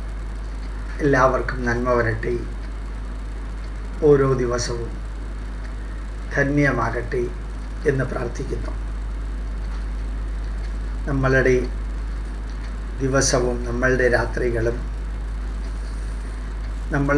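An older man speaks calmly and slowly in short phrases, close to a microphone.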